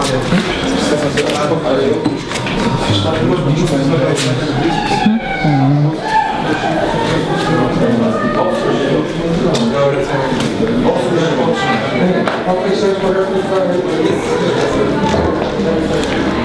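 Several men talk and chatter in a busy room.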